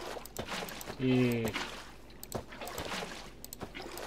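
Water splashes as a bucket is poured out.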